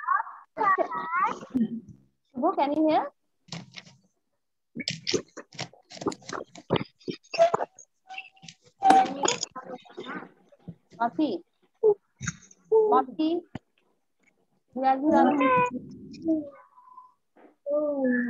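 A child speaks over an online call, heard through a computer speaker.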